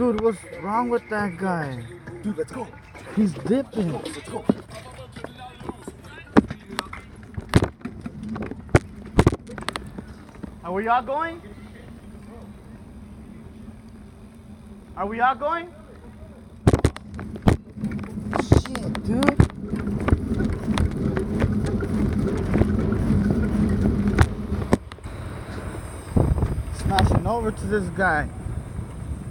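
Bicycle tyres roll over asphalt.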